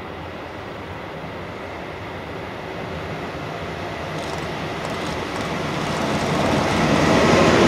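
A freight train approaches along the tracks, growing steadily louder.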